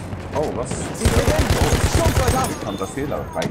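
A machine gun fires a rapid burst at close range.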